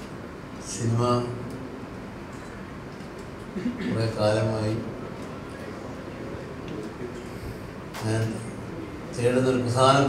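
An elderly man speaks with animation through a microphone in a large hall.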